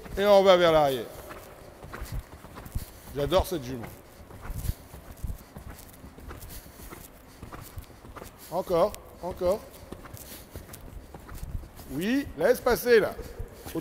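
Horse hooves thud softly on sand.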